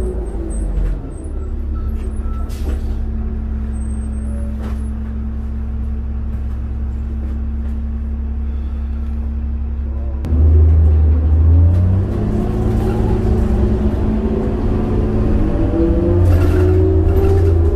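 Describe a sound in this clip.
A bus engine hums steadily from inside the cabin, then revs louder as the bus pulls away.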